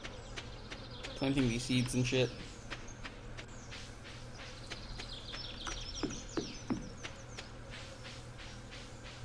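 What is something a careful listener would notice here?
Light footsteps patter steadily over grass.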